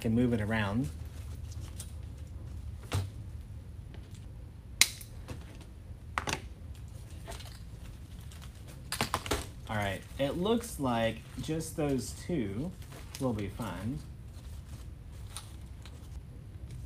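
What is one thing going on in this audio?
Artificial flowers rustle and click as they are arranged.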